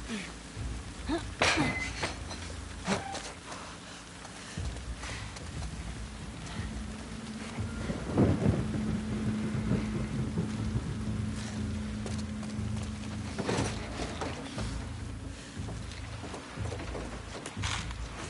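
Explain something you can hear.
Footsteps thud and scuff on hard ground.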